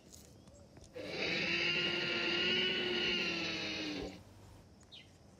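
A toy dinosaur lets out a loud, long electronic roar.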